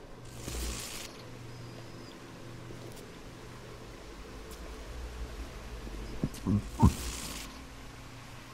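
Electricity crackles and hisses in short bursts.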